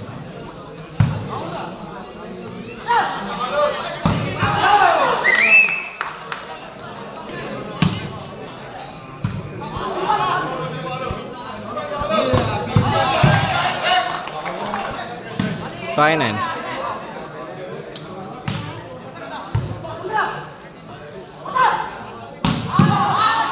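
A volleyball is struck with hard slaps.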